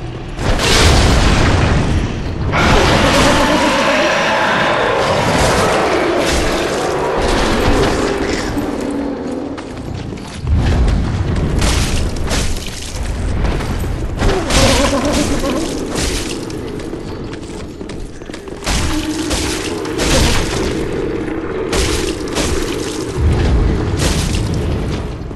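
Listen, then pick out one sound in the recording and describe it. A large creature thuds and stomps on a stone floor.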